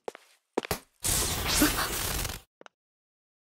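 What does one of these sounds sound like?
A magical spell crackles and whooshes.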